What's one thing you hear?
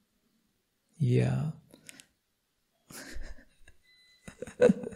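A man speaks calmly and warmly into a close microphone, with pauses.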